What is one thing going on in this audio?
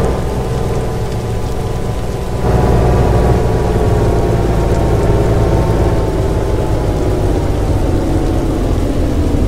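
A bus engine hums steadily and its pitch slowly falls as the bus slows down.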